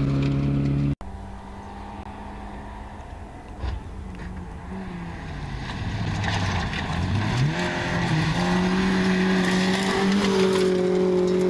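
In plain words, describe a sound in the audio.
A second rally car engine roars as it approaches and speeds past.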